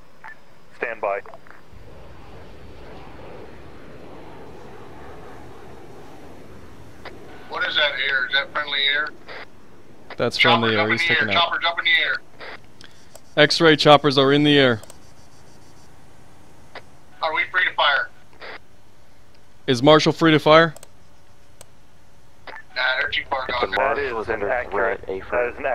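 A man talks into a close microphone with animation, in bursts.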